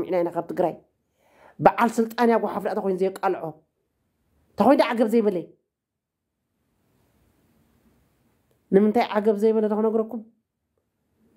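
A woman speaks calmly and close, in short phrases with pauses.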